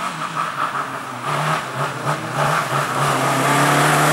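Tyres skid and crunch on loose gravel.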